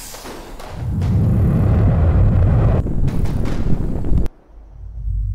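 A rocket engine roars.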